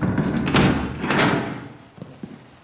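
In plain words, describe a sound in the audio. A heavy metal door clanks shut.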